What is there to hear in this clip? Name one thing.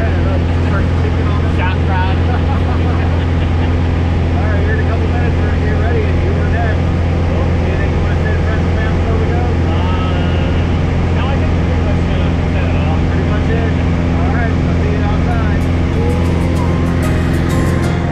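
A small plane's engine drones loudly and steadily.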